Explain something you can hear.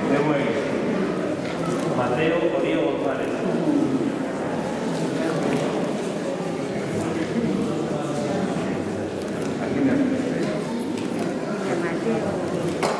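A man reads out a prayer aloud in a large echoing hall.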